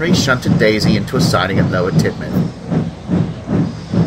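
A steam locomotive chuffs steadily as it pulls away.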